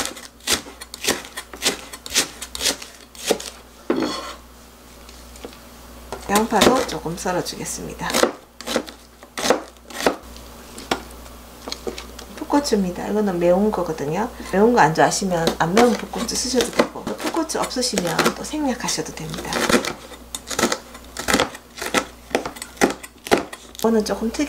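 A knife chops quickly on a cutting board.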